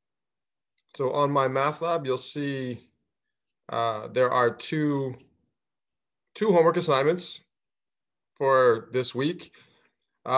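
A man speaks calmly into a microphone, explaining in short phrases.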